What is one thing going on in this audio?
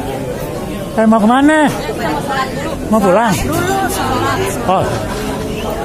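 A middle-aged woman talks close by.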